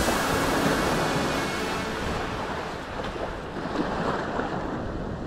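Waves wash gently onto the shore outdoors.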